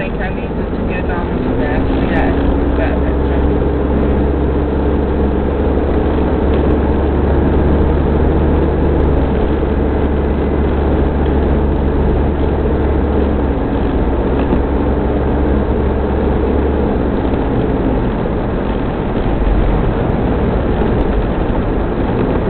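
Tyres hiss and crunch over a snowy road.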